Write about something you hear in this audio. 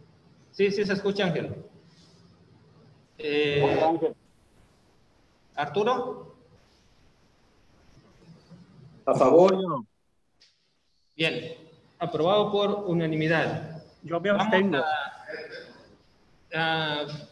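A man speaks into a microphone in short bursts, heard through an online call.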